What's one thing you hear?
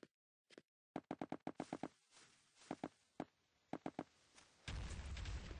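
Blocks snap into place with sharp, quick clicks.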